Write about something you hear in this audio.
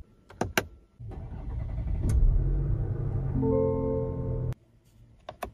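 A car engine starts with a whir and then idles.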